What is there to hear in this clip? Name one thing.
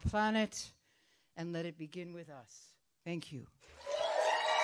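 An elderly woman speaks calmly into a microphone in a large hall.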